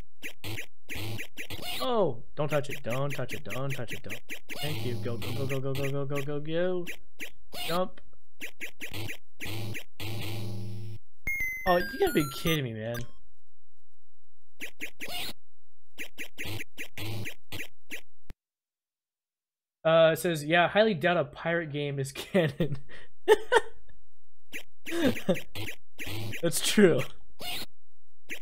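Electronic game music plays with quick beeps.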